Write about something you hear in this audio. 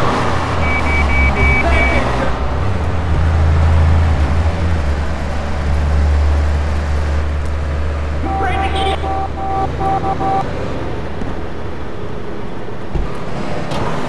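A car engine hums low and steady nearby.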